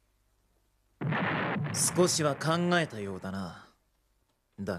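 A man speaks in a calm, low voice.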